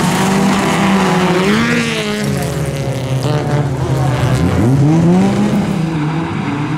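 A racing car speeds past close by with a rising then falling engine note.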